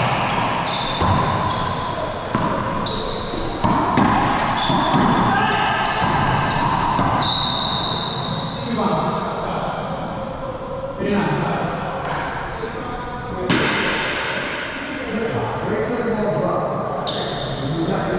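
A ball smacks sharply against walls and rackets, echoing through a large hard-walled court.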